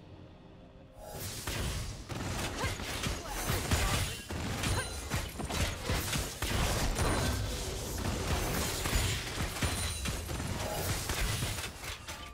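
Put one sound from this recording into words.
Game spells and weapons clash and blast in quick bursts.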